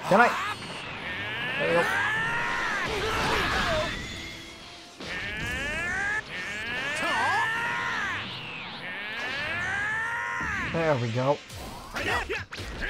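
Energy blasts whoosh and roar with swooping, whistling tones.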